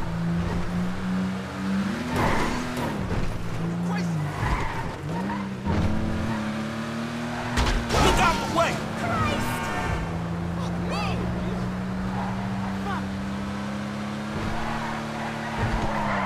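A car engine hums steadily and revs up and down as the car drives.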